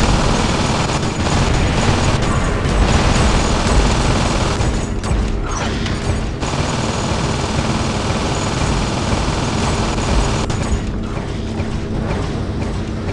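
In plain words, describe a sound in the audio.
A robot's engines roar steadily as it moves.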